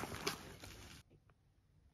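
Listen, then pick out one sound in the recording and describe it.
A stylus taps on a tablet.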